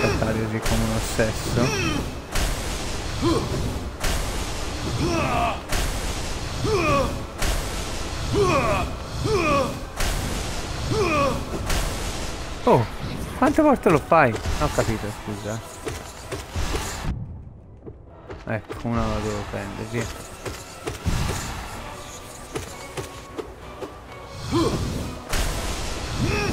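Magic blasts burst with loud whooshes.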